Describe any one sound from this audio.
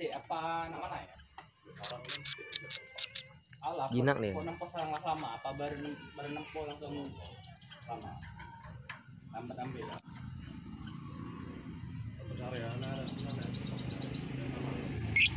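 A small parrot chirps in rapid, shrill trills close by.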